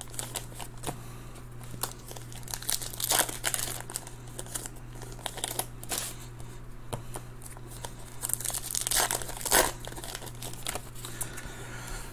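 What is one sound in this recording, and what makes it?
Trading cards shuffle and slap softly onto a stack.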